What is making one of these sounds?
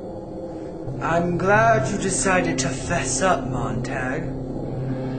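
A teenage boy speaks close by.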